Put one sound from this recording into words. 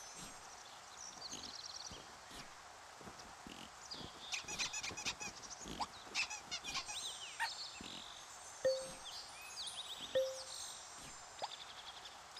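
Small creatures chirp and twitter in quick bursts.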